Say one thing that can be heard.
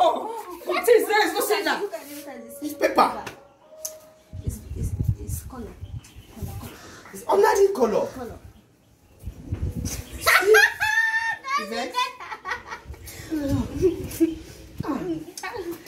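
Young women talk with animation, close by.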